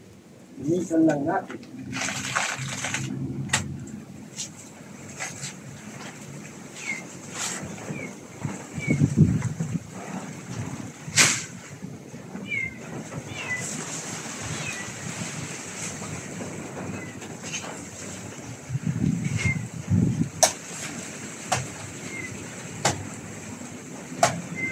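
Leaves rustle and stems snap as a man handles a plant close by.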